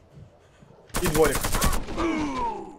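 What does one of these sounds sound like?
Gunfire bursts out close by.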